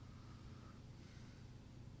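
A brush dabs softly on a canvas.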